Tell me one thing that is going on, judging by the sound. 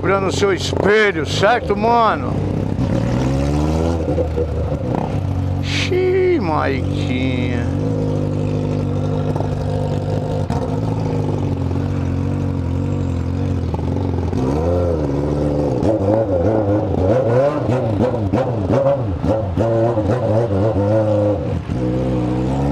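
A motorcycle engine idles with a steady low rumble close by.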